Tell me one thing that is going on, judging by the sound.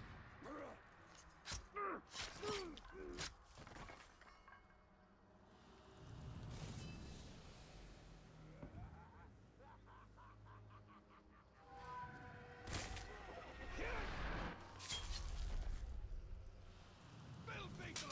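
Swords clash and strike in a game fight.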